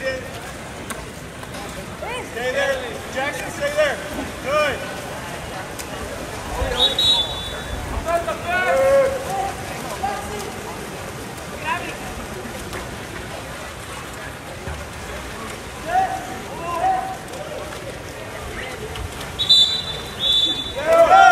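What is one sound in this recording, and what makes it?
Players splash and thrash in a pool.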